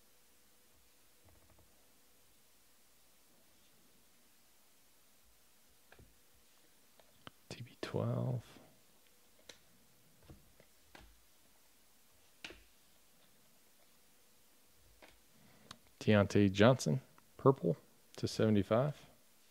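Trading cards slide and flick against each other in a person's hands.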